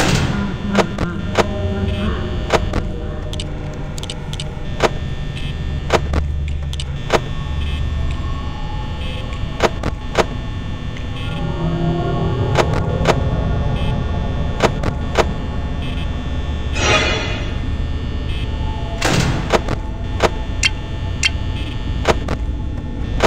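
Electric static hisses and crackles.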